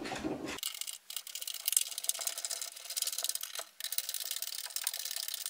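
Metal parts clink and scrape as they are handled on a table.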